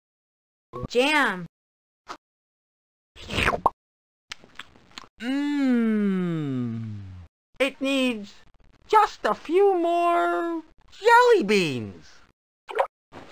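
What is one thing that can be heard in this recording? A man speaks playfully in a cartoon voice.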